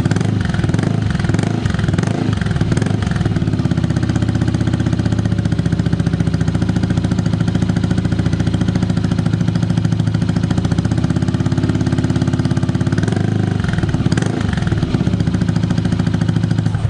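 A motorcycle engine idles with a deep, steady burble through the exhaust.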